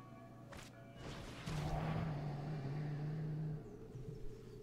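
A magical shimmering whoosh sounds as a spell is cast.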